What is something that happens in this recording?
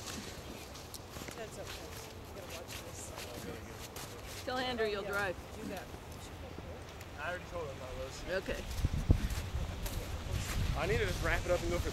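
Footsteps crunch in snow nearby.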